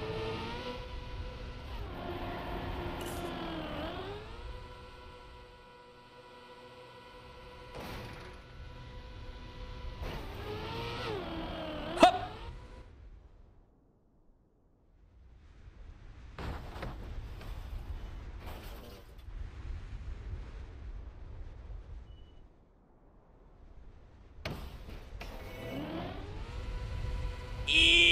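A racing car engine whines steadily, rising and falling in pitch.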